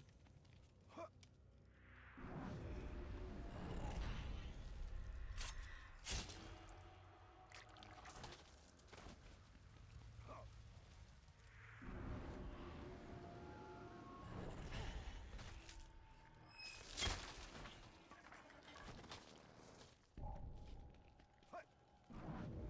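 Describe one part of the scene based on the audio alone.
Swords clash and bodies thud in a fight.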